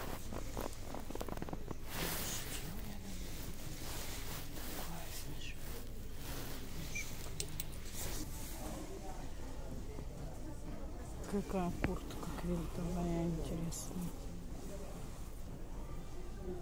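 Clothes rustle as they are pushed along a rail.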